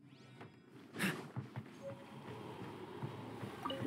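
Quick footsteps run across a wooden floor.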